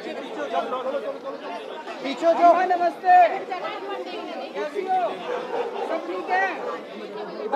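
A crowd of men and women talks and shouts all around, close by.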